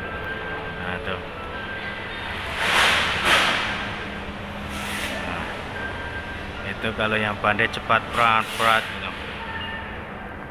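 A man rubs and scrapes a carpet by hand.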